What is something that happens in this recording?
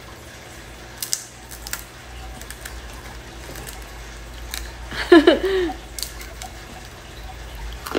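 A young woman bites and crunches on a crisp snack.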